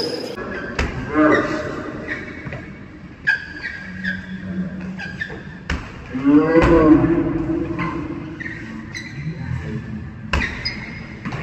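A basketball bounces and thuds on a hard court in a large echoing hall.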